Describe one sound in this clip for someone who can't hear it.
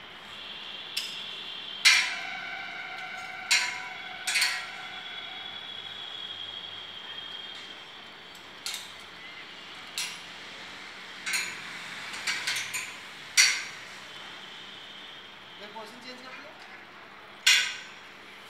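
Metal clanks and rings sharply as a worker climbs a steel tower.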